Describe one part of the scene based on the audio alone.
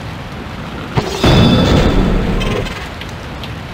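A heavy thud booms as a beetle slams to the ground in a video game.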